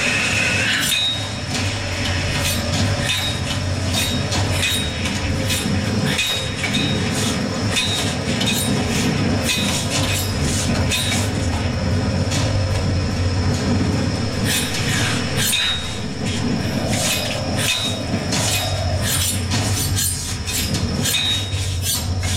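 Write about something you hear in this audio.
Hands grab and scrape against rock.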